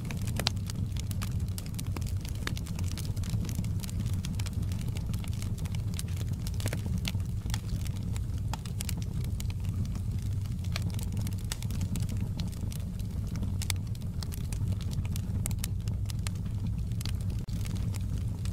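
A wood fire roars steadily with a low rumble.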